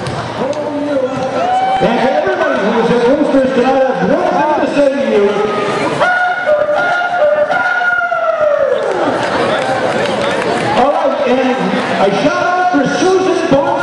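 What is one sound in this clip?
A man sings through a loudspeaker, his voice echoing around the hall.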